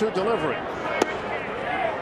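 A baseball pops into a catcher's mitt.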